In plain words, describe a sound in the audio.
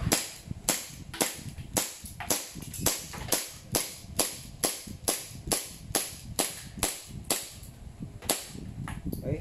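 A pistol fires rapid sharp shots, close by.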